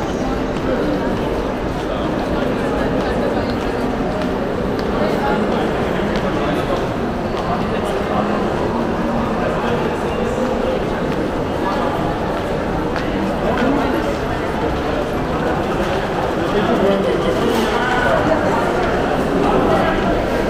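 A crowd murmurs and chatters steadily in a large echoing hall.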